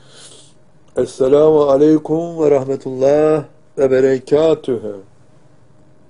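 An elderly man speaks calmly and expressively into a microphone.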